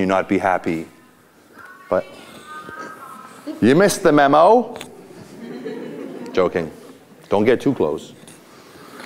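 A middle-aged man speaks loudly and with animation in an echoing room.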